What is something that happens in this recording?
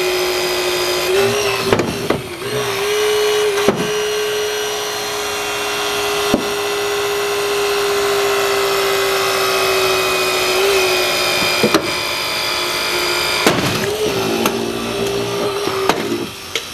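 A hydraulic rescue tool drones with a steady whine.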